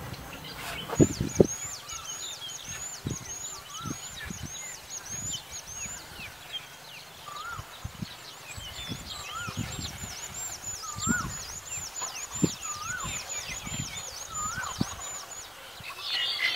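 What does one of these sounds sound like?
A bird sings a long run of high, repeated notes.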